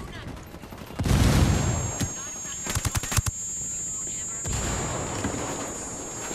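Gunfire and explosions crack and boom in a game.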